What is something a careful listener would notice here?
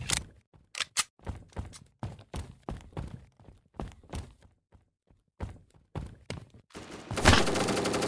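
Footsteps tread quickly on hard ground.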